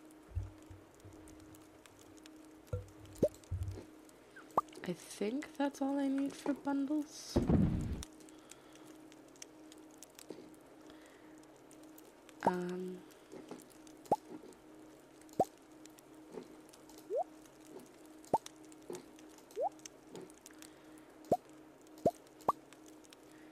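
Short soft blips and pops sound as items are picked up and dropped.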